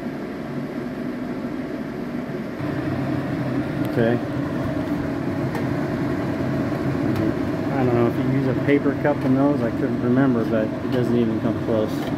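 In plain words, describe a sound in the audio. A range hood fan hums steadily and grows a little louder.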